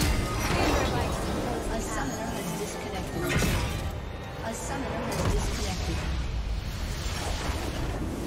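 Game spell effects crackle and boom in a fast clash.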